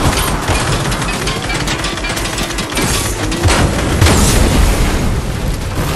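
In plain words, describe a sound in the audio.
Gunshots crack and an explosion booms nearby.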